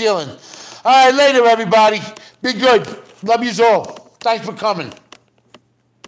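A middle-aged man speaks close to a phone microphone with animation.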